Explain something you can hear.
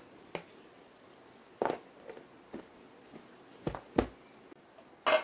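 A plastic lid clicks onto a plastic tub.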